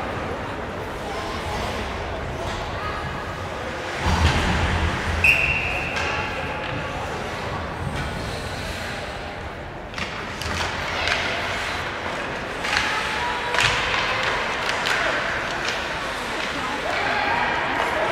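Spectators near the rink chatter and call out.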